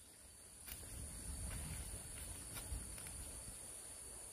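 A woman pushes through leafy plants, rustling the leaves.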